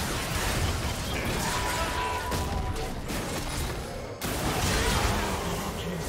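Spell effects and weapon hits clash in a video game battle.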